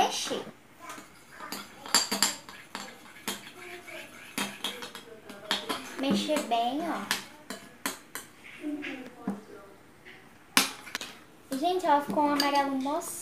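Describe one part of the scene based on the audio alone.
A spoon clinks and scrapes against a glass bowl.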